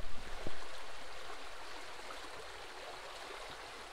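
Water rushes and swirls over stones in a stream.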